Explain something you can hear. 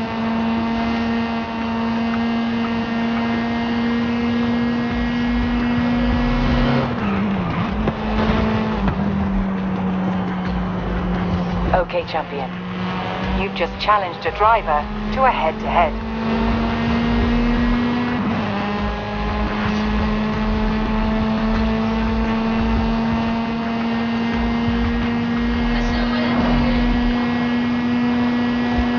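A racing car engine roars steadily at high speed, dipping briefly at each gear change.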